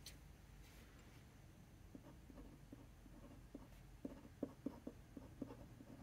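A pen nib scratches softly on paper.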